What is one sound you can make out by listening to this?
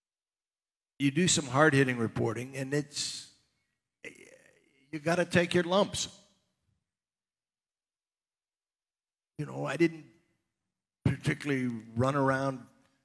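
An older man speaks calmly into a headset microphone, pausing between phrases.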